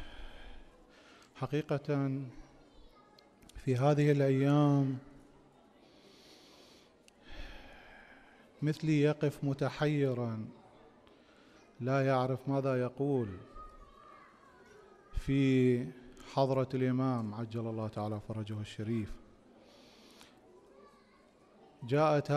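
A man speaks slowly and solemnly into a microphone, in bursts with pauses.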